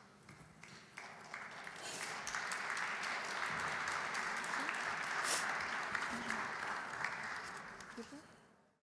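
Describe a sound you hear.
An audience applauds steadily, then the applause fades.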